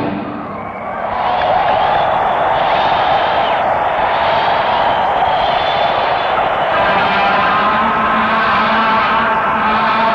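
An electric guitar plays loudly.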